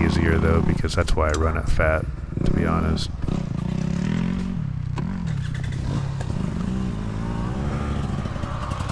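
A dirt bike engine revs and idles up close.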